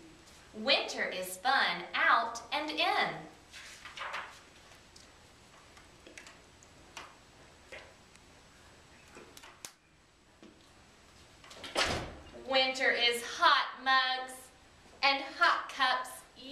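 A young woman reads aloud with animation, close by.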